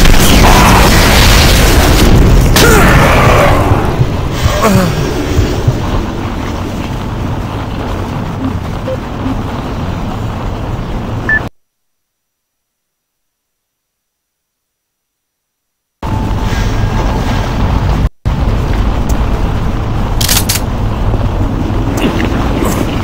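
A deep industrial rumble drones steadily.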